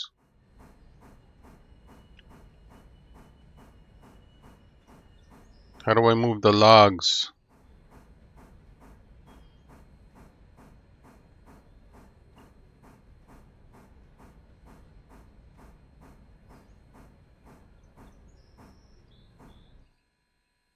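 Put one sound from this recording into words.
A steam locomotive chuffs in a steady rhythm.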